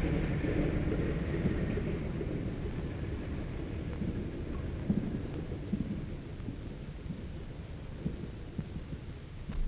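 Propeller engines of a flying boat hum steadily as it taxis on the water.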